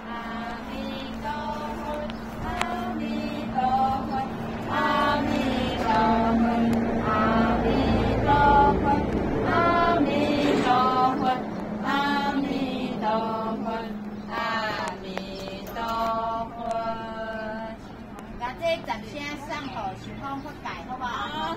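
Men chant slowly in drawn-out voices nearby.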